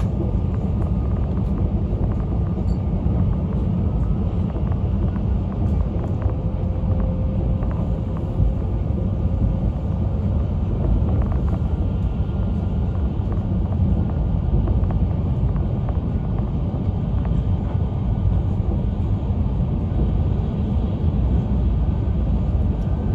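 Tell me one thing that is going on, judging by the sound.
A train rumbles steadily at speed.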